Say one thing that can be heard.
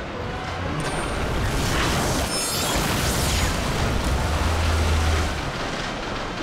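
A rushing surge of water roars and crashes.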